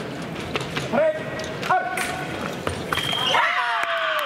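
Fencing blades clash and scrape together.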